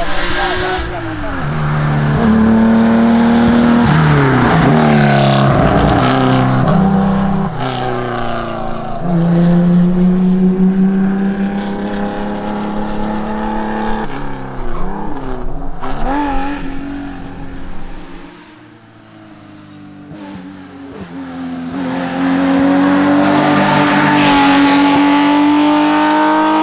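A rally car engine roars and revs hard as the car speeds past.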